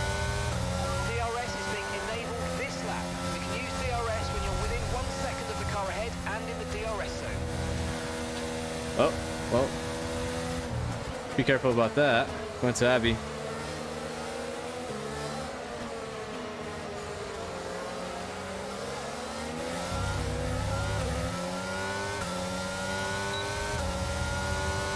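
A racing car engine whines loudly, dropping in pitch as the car brakes and climbing again as it speeds up.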